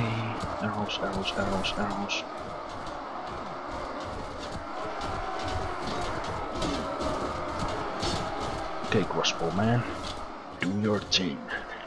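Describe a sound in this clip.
Weapons clash and clatter in a battle.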